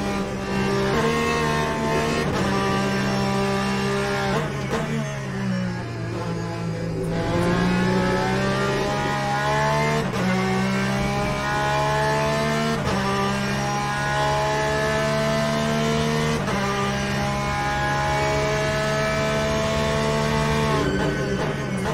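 Gear shifts clunk sharply, now and then.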